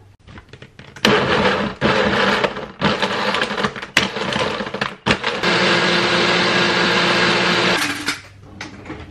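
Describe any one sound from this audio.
A blender whirs loudly, crushing ice and fruit.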